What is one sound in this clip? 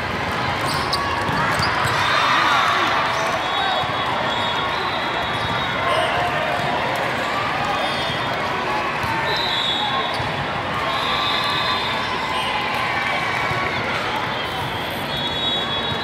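A volleyball thumps off a player's arms.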